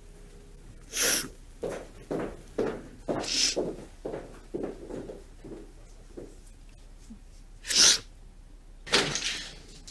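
A young woman sighs and gasps in distress.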